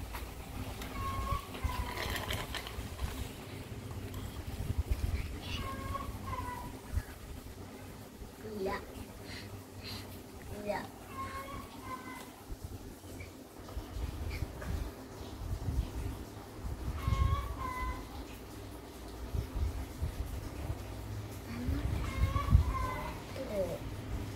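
Two young boys talk playfully close by.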